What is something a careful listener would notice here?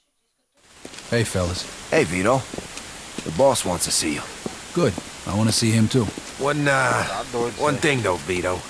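A man speaks in a low, serious voice.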